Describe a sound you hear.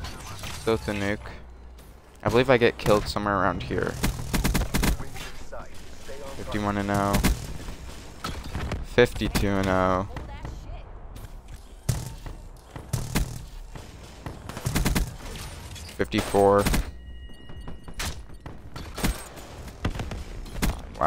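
Rapid gunfire bursts out in quick volleys.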